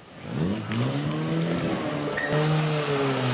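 A pump engine roars and revs up and down nearby.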